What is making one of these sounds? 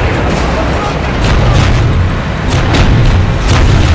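Giant robot walkers stomp heavily.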